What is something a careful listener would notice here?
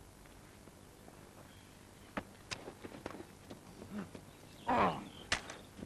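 Footsteps crunch and scuff on dry stony ground.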